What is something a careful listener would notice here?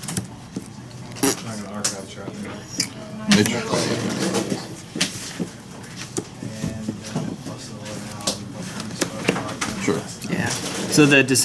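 Playing cards slide and tap on a tabletop.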